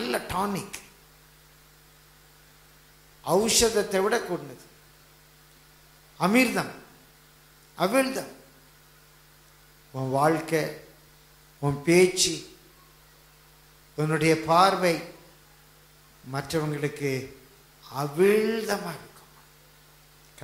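An elderly man speaks into a microphone in short, forceful phrases with pauses between them.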